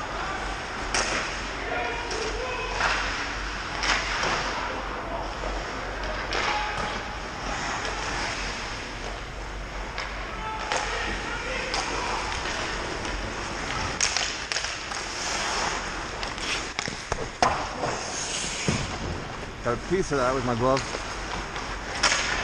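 Hockey sticks clack against a puck and against each other.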